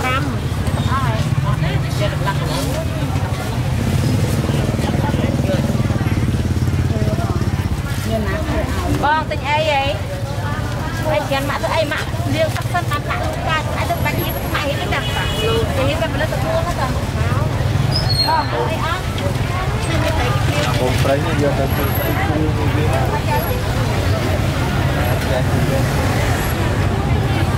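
A busy crowd of women chatters all around.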